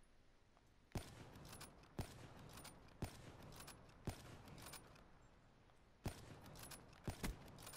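A rifle fires single shots at uneven intervals, with a sharp crack and short ringing after each shot.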